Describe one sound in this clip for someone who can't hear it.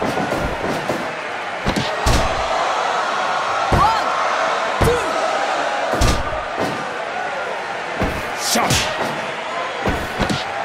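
Heavy thuds of bodies and hands hit a wrestling mat.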